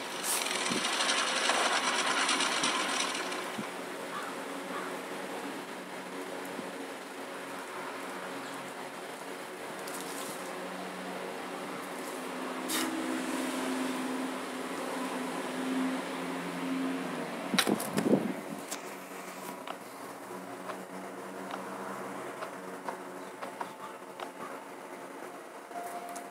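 A chopper motorcycle engine runs.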